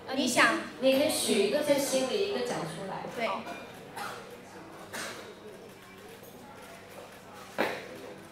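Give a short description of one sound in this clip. Young women talk and laugh into a microphone.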